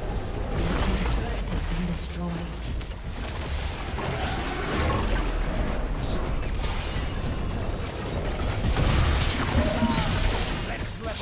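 Game spell effects whoosh and crackle during a battle.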